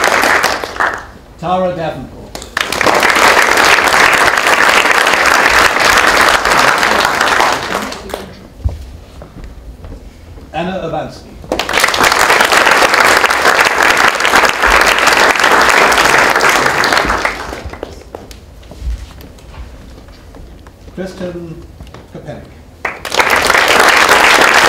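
A crowd applauds loudly in bursts.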